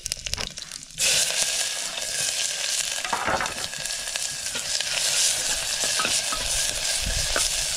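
Food sizzles loudly in a hot pot.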